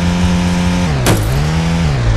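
A car lands with a sudden thud.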